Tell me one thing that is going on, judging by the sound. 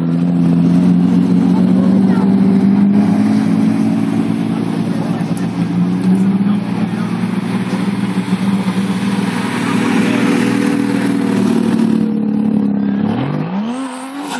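A car engine roars loudly as the car drifts around a bend.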